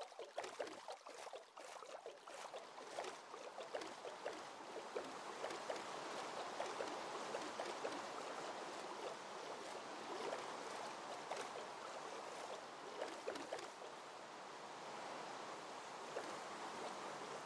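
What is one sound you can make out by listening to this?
Rain patters on water.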